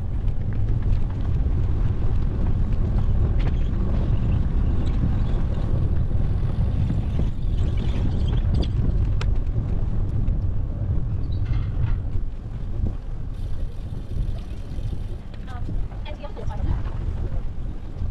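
Wind rushes and buffets loudly outdoors.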